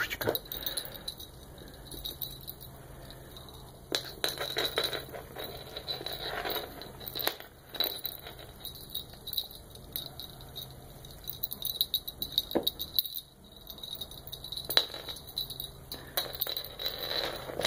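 A toy bell jingles as kittens bat at it.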